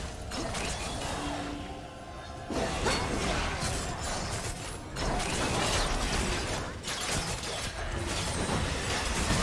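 Spell effects whoosh, crackle and burst in a fast fight.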